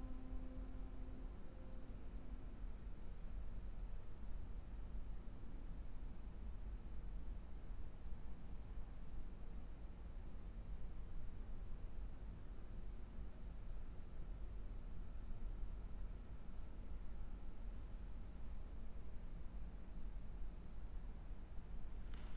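A violin plays a slow, soft, sustained melody.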